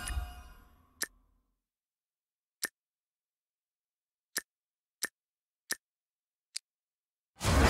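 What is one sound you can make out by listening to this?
Short soft clicks sound as options are selected.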